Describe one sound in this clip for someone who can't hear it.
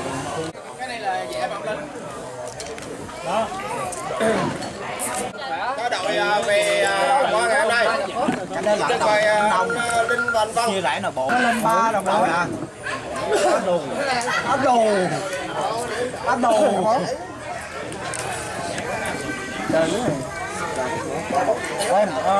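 Men and women chatter around a table.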